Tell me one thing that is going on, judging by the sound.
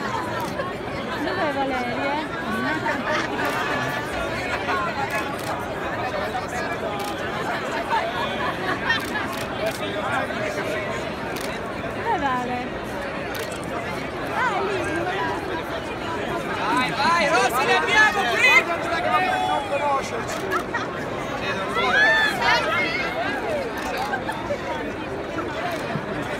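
A large crowd of men and women chatters and calls out in a big echoing arcade.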